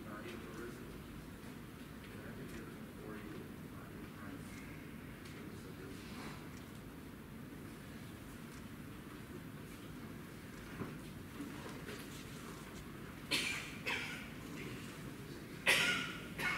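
A low murmur of a congregation fills a large echoing room.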